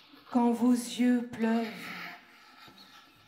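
A woman sings into a microphone in a reverberant hall.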